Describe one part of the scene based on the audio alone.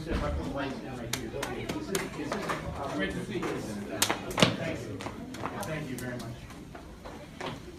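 Hands clap and slap in quick handshakes.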